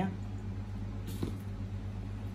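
A small plastic object is set down on a hard surface with a light click.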